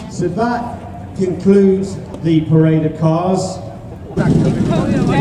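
A man speaks through a loudspeaker outdoors.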